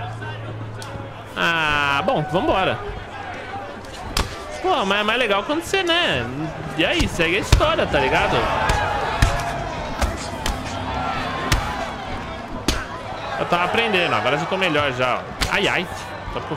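Punches thud against a body in a game.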